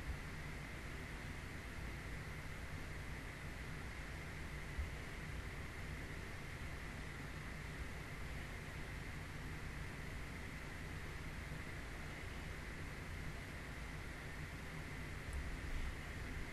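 A young woman makes sounds with her mouth close into a microphone.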